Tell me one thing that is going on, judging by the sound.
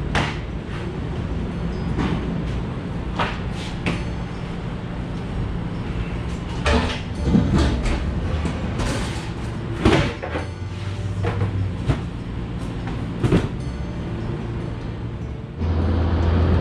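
A pallet jack rattles and clanks as it rolls pallets across a trailer floor.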